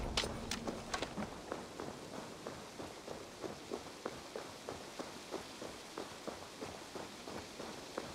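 Footsteps thud quickly and evenly on a dirt path.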